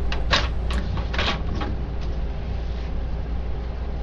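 A plastic printer panel snaps shut.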